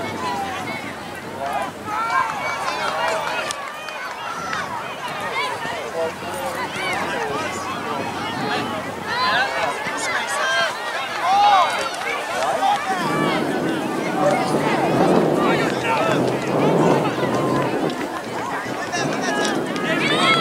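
Young players shout and call out to each other across an open field.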